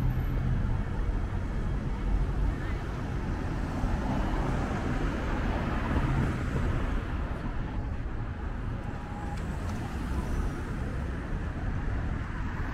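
Traffic rumbles steadily along a city street outdoors.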